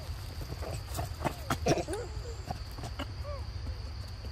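A baby monkey squeals shrilly.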